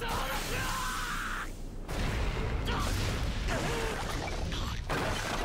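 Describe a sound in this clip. Steel blades swish through the air.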